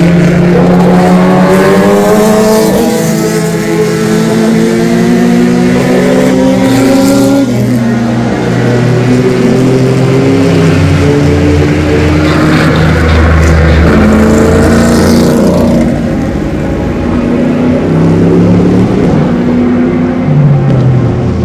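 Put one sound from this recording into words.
Racing car engines roar loudly as cars speed past, the pitch rising and falling.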